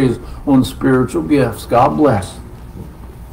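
A middle-aged man speaks loudly and with feeling, close by.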